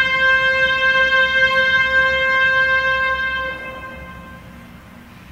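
A woodwind instrument plays a long, steady held note that fades away.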